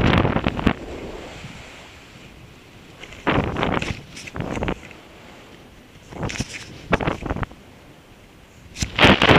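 Wind rushes past and buffets the microphone in sudden gusts.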